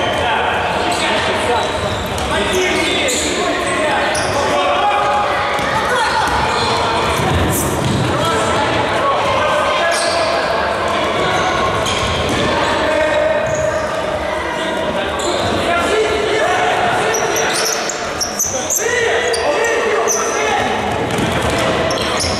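A ball thuds when kicked.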